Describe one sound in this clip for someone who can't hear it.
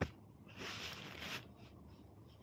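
A young woman breathes out in a soft sigh close by.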